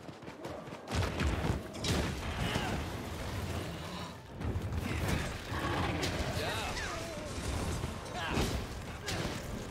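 Weapons clash and strike with heavy thuds.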